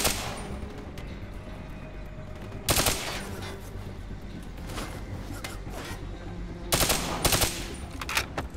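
An automatic rifle fires in bursts.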